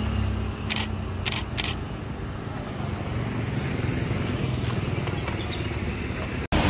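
Footsteps patter on pavement outdoors.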